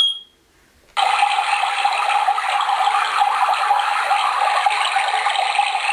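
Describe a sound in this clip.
Recorded rushing water plays steadily from a small speaker.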